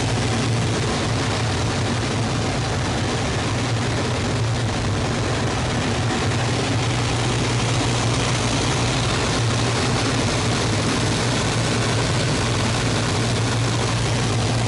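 A propeller engine drones loudly and steadily close by.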